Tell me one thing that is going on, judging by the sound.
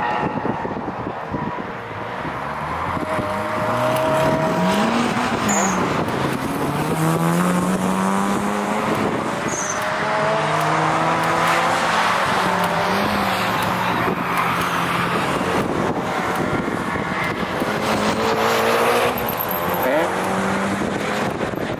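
Several car engines roar and rev as the cars race around a track outdoors.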